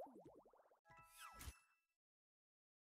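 A short jingle of bright tones plays.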